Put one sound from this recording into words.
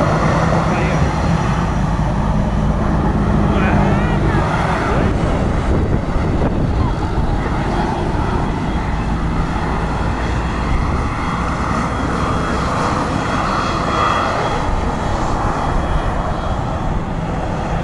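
Wind blusters outdoors.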